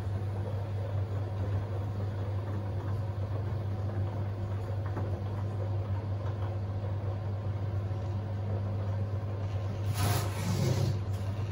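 Water and wet laundry slosh inside a washing machine drum.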